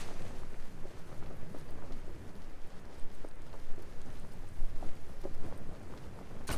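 Wind rushes steadily past a gliding parachute.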